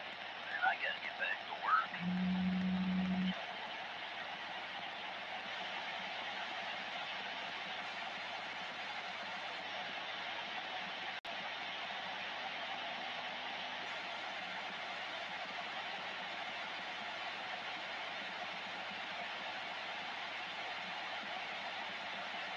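A radio hisses with steady static.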